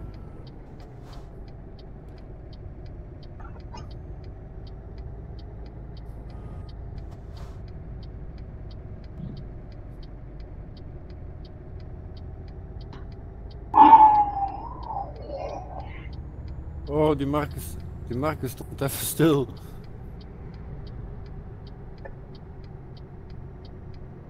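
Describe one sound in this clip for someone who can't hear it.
A truck engine hums steadily from inside the cab.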